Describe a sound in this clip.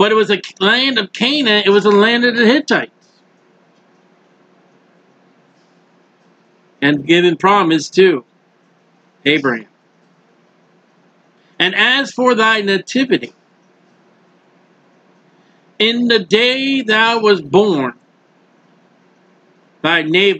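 A middle-aged man speaks calmly into a microphone, close by, in short phrases with pauses.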